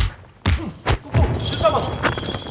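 A young woman shouts a warning.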